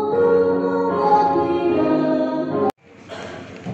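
A large group sings together in an echoing hall.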